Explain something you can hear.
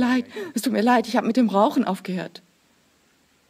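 An elderly man speaks calmly and clearly into a microphone.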